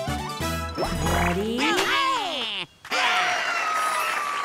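Swooping cartoon sound effects slide up and down.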